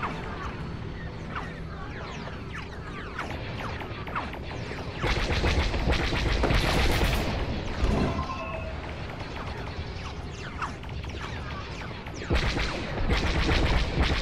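A spaceship engine hums and roars steadily, swelling louder at times.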